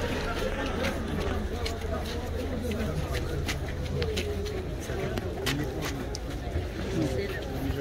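Footsteps shuffle as a crowd walks.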